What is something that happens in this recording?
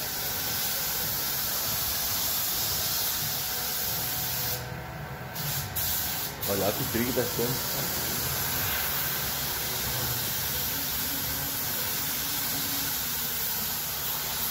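A spray gun hisses steadily, with brief pauses.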